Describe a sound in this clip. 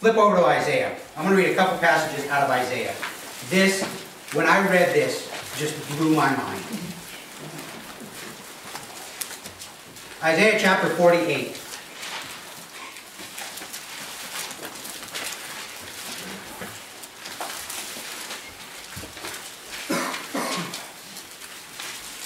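A middle-aged man speaks calmly into a microphone in a room with some echo.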